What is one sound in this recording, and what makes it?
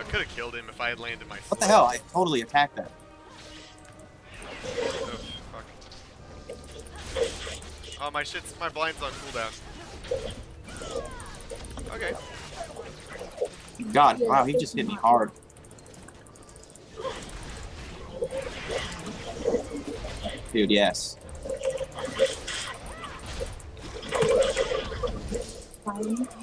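Game spell effects crackle and burst during a fight.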